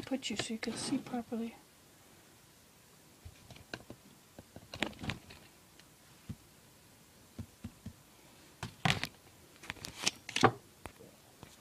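A knife scrapes and taps against soft wood.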